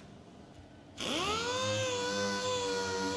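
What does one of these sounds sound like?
A polisher whirs steadily as it spins up.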